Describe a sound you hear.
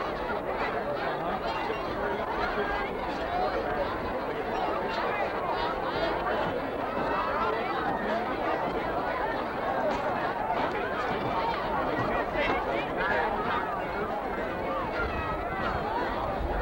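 A crowd of people chatter in a dense, overlapping murmur outdoors.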